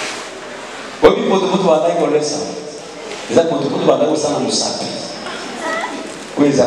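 A man speaks loudly and with animation into a microphone, heard over loudspeakers in an echoing hall.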